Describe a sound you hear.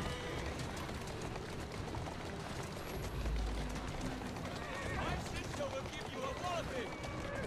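Horse hooves clatter on cobblestones as a carriage approaches.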